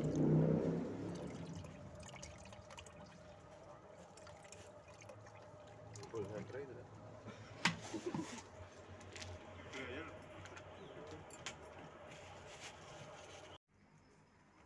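Water from a hose splashes into a tub of water.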